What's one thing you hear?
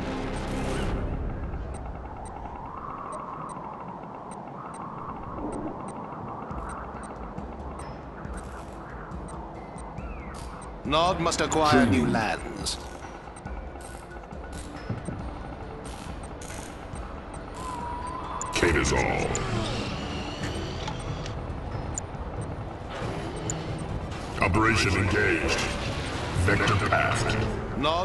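Short interface clicks tick sharply now and then.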